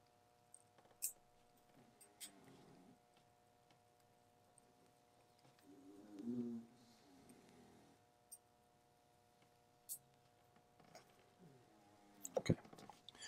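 A small metal tool taps and clicks faintly against a watch.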